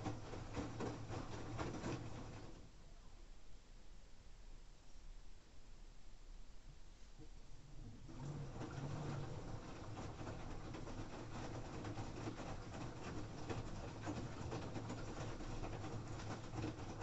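Laundry tumbles and swishes inside a washing machine drum, pausing briefly before starting again.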